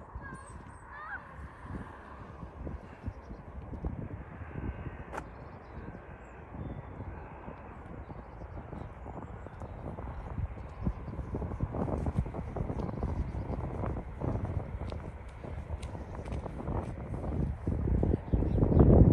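Wind buffets the microphone outdoors, growing stronger toward the end.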